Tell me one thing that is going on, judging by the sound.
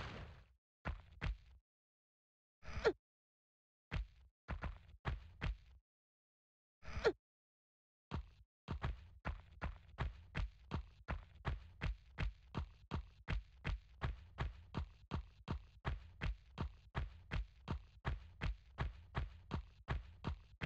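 Quick footsteps patter steadily on stone and sand.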